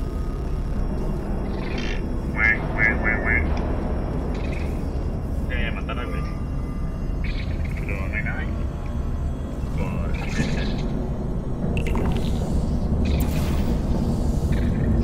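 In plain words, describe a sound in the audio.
A sci-fi gun fires short electronic zaps.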